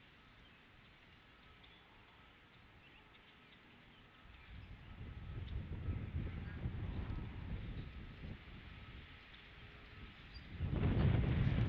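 A large bird shifts and rustles the dry grass and sticks of its nest as it settles.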